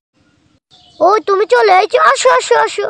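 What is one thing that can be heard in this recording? A young girl speaks.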